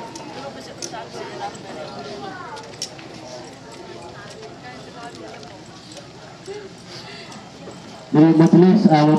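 A crowd murmurs and chatters softly outdoors.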